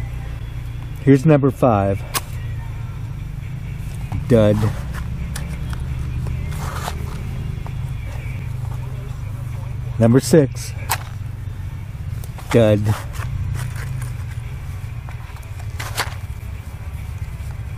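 A match scrapes against the side of a matchbox.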